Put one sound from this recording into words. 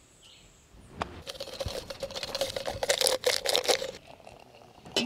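Water pours into a metal flask.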